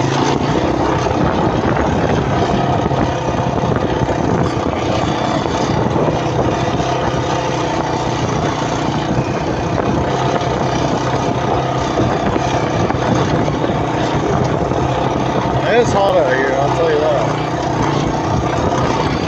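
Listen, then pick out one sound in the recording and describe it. A small engine drones steadily close by.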